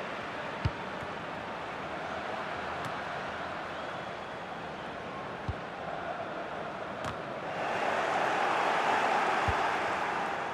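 A football is kicked with dull thuds.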